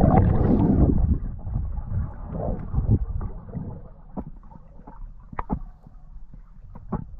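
Water rushes and gurgles around an underwater microphone.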